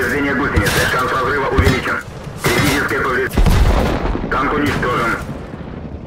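A shell explodes with a heavy blast.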